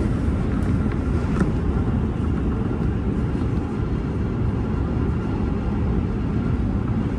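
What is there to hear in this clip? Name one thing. A train rumbles steadily along the tracks, heard from inside the cab.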